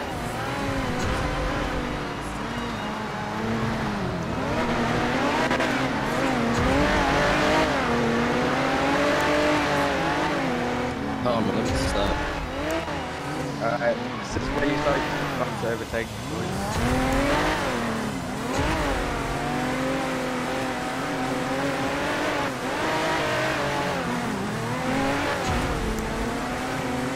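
A car engine hums and revs as it drives along a road.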